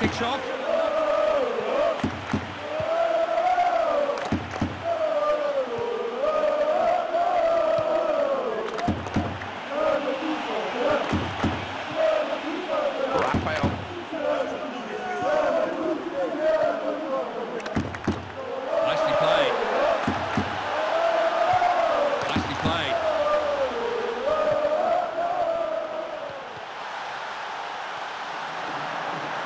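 A crowd murmurs steadily in a large stadium.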